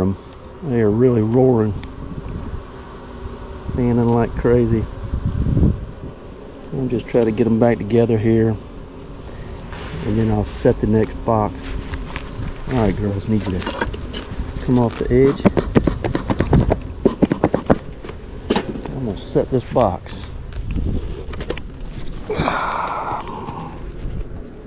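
Bees buzz around an open hive.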